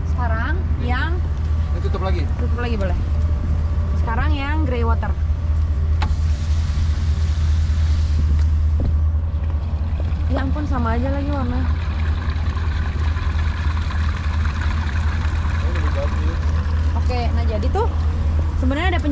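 Water rushes through a drain hose.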